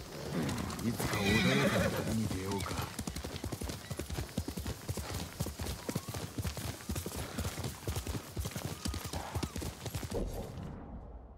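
A horse gallops with quick, steady hoofbeats on soft ground.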